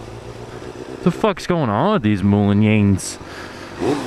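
A motorcycle engine revs up and down sharply.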